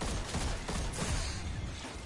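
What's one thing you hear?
An energy blast explodes loudly.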